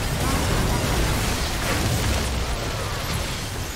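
Game weapons fire rapid zapping shots.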